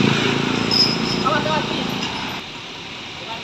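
A truck engine idles close by with a low rumble.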